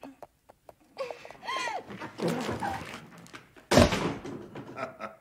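A woman wails and sobs with emotion nearby.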